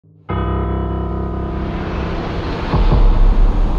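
A piano chord rings out and slowly fades.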